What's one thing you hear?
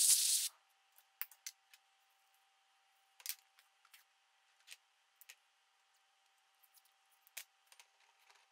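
Metal tools clink and clatter on a workbench.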